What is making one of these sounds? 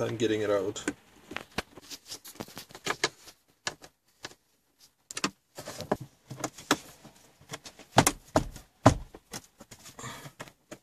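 A small tool clicks and scrapes against plastic trim.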